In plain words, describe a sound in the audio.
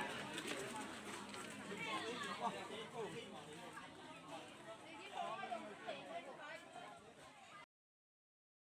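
A crowd of adults chatter nearby outdoors.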